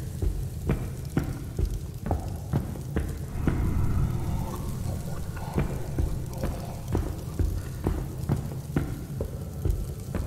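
A torch flame crackles and roars close by.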